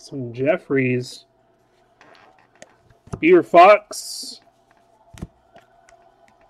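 Stiff trading cards rustle and tap as hands sort through them.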